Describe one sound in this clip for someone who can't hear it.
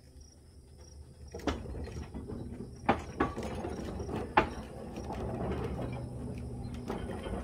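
A rail cart rolls slowly along a track with metal clanks and creaks.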